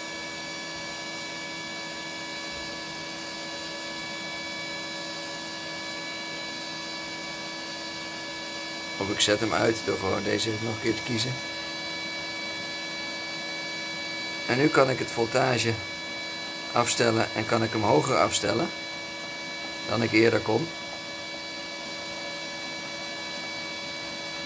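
A machine hums steadily with a fan whirring.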